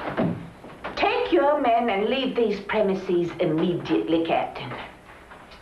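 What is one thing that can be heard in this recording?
A man speaks firmly in reply.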